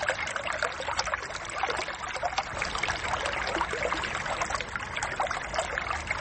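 A small stream splashes and babbles over rocks.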